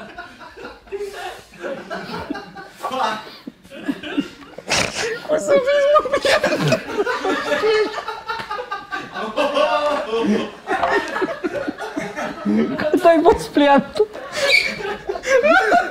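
Two men laugh loudly together close by.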